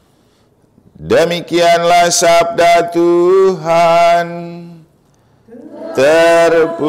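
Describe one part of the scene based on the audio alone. A man chants in a sustained voice through a microphone.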